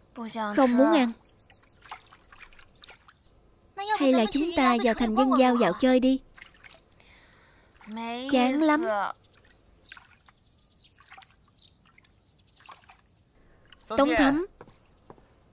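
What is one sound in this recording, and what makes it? Young women speak calmly and close by.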